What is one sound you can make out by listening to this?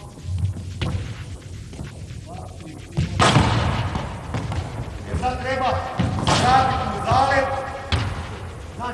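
A ball bounces on a wooden floor in an echoing hall.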